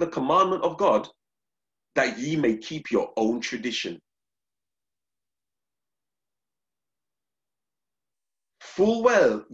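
A man speaks calmly into a microphone, as if over an online call.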